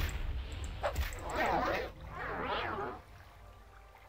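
A spell whooshes and crackles.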